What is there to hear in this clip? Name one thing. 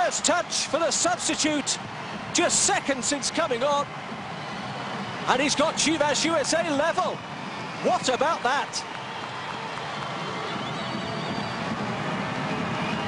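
Men shout excitedly in celebration.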